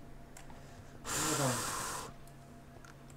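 A smoke grenade hisses as it releases smoke.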